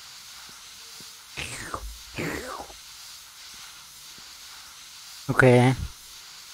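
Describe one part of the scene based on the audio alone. Water hoses spray with a steady hiss.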